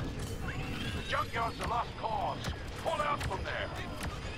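Laser guns fire in quick bursts.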